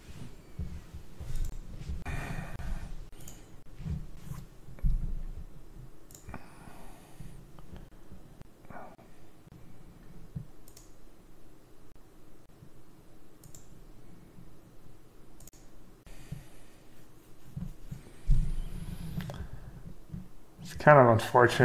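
A young man speaks quietly into a microphone, in short bursts with long pauses.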